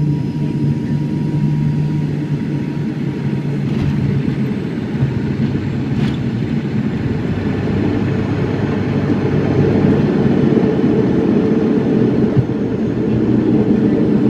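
A propeller engine drones loudly and steadily close by.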